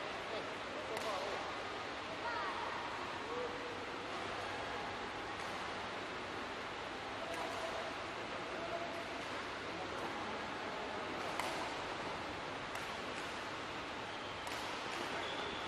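A racket sharply strikes a shuttlecock in a large echoing hall.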